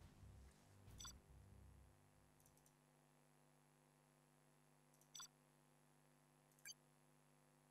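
Short electronic menu clicks chime now and then.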